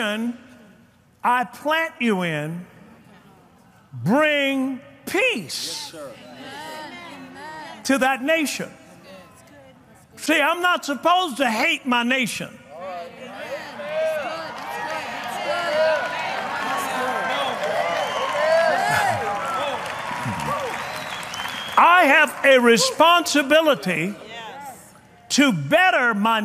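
A man preaches forcefully through a microphone.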